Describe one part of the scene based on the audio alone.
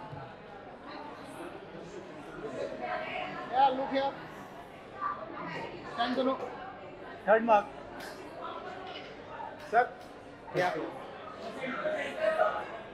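A man talks loudly nearby in short bursts.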